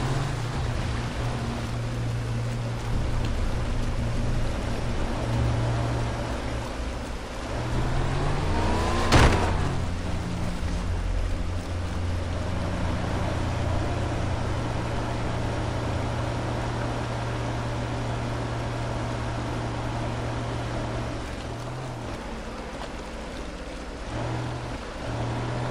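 A waterfall roars close by.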